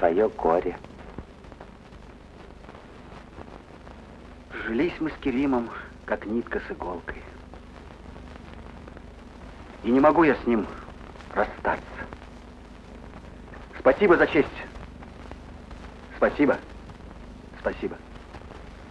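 A young man speaks quietly and slowly, in short phrases with pauses.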